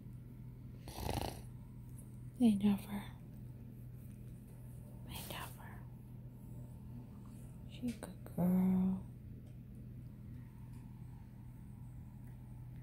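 A hand strokes and rustles a small dog's fur close by.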